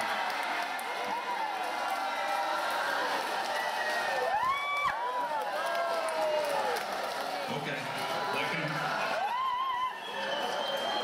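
A crowd cheers and whistles loudly.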